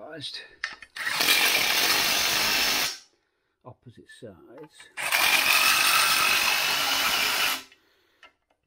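A cordless drill whirs as it spins bolts loose, in two bursts.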